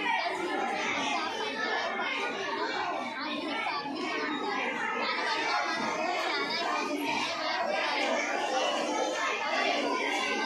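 A young girl speaks calmly and clearly nearby.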